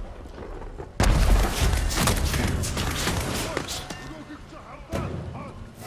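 Swords clash and slash in a fight.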